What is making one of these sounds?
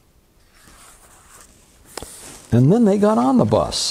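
A paper page turns.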